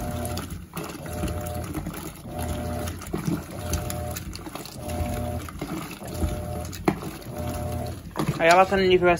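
A washing machine churns and sloshes water in a steady rhythm.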